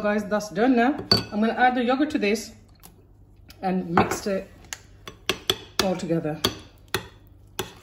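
A metal spoon scrapes and clinks against a ceramic bowl.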